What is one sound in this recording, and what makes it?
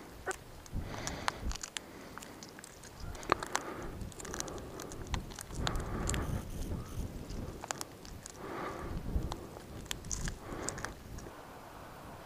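Small squirrels nibble seeds from a person's hands.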